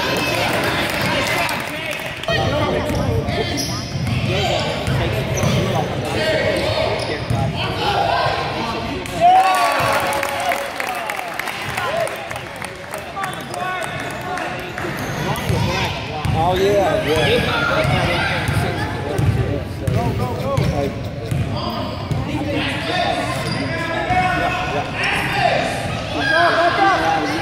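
Spectators cheer and shout in an echoing gym.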